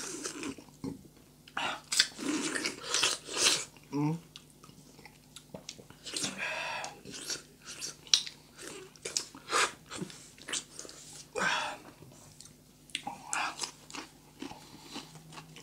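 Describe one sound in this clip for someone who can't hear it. A woman and a man bite and chew crunchy food loudly, close to a microphone.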